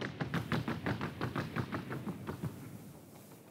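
A horse's hooves beat rapidly and evenly on hard ground.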